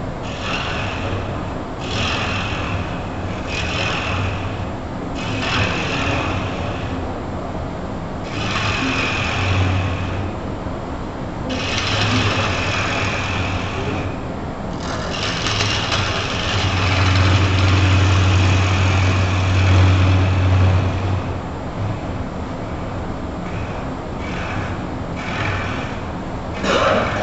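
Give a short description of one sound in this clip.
A chisel scrapes against spinning wood in bursts of rough hissing.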